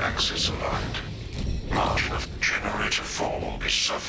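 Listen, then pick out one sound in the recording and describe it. Electricity crackles and zaps loudly.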